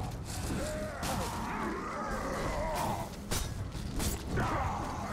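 Blades slash and strike hard in a close fight.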